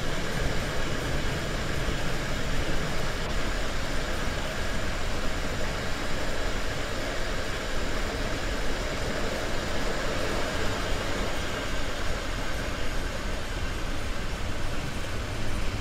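An electric train rumbles steadily along the tracks.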